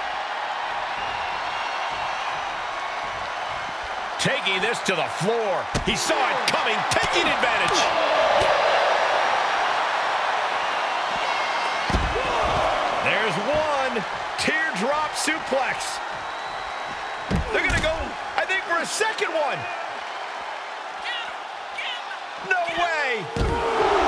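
A large crowd roars and cheers in a big arena.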